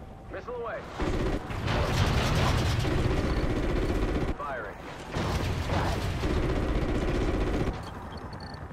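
A helicopter's gun fires in rapid, heavy bursts.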